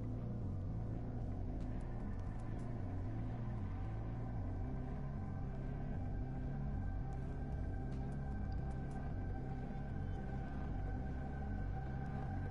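Low, droning game music plays steadily.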